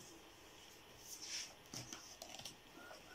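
Paper pages rustle and flap as a book is picked up.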